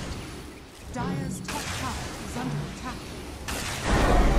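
Fiery magic blasts whoosh and crackle in quick bursts.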